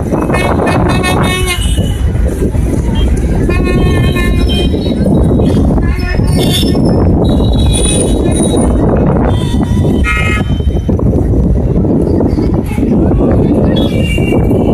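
A crowd of men talk and shout nearby.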